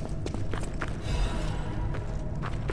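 A soft chime rings as an item is picked up.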